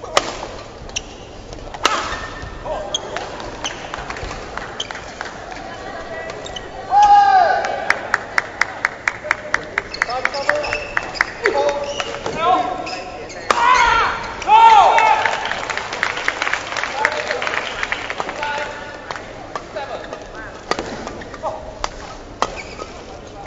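Badminton rackets strike a shuttlecock back and forth in a large indoor hall.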